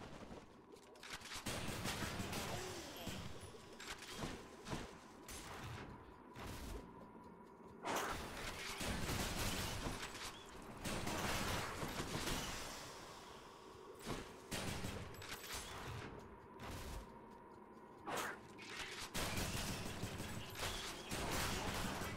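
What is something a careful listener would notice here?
Game combat sounds blast and zap in quick bursts.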